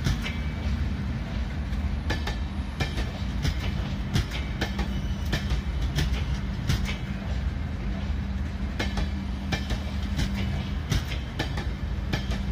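A passenger train rumbles past close by on the tracks.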